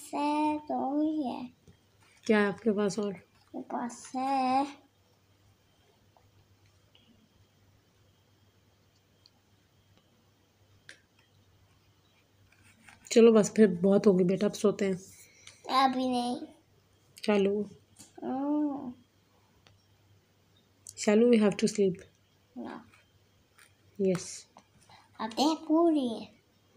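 A young child talks nearby with animation, in short bursts.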